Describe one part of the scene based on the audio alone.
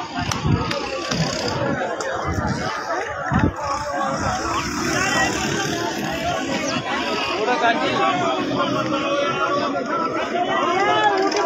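A crowd of men talks and shouts outdoors at once.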